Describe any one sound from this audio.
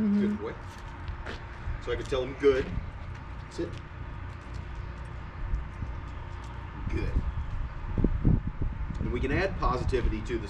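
A man talks calmly to a dog nearby, outdoors.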